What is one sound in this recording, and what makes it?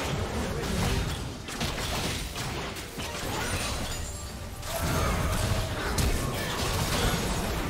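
Magic spells crackle and whoosh in a fast-paced battle.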